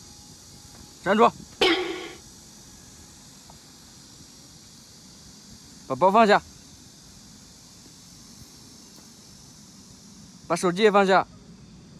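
A man speaks loudly and firmly nearby, in short bursts.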